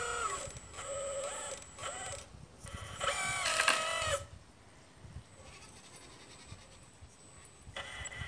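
A small electric motor whines in short bursts as a toy digger arm moves.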